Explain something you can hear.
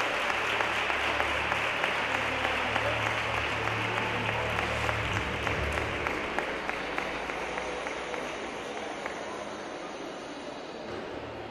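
A crowd applauds in a large echoing hall, then the clapping fades.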